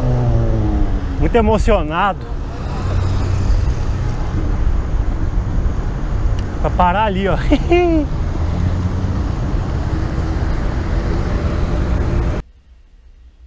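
Wind rushes loudly past a fast-moving bicycle.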